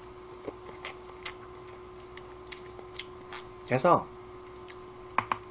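A young man smacks his lips while chewing food.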